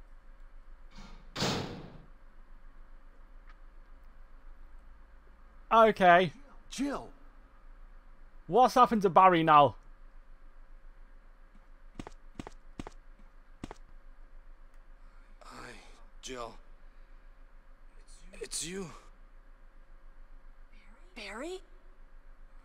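A young man speaks now and then into a microphone.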